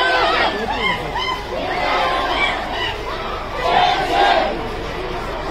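A crowd of men talk and murmur close by outdoors.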